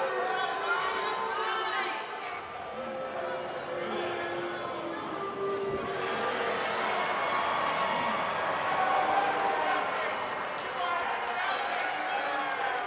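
A large crowd cheers and murmurs in a big arena.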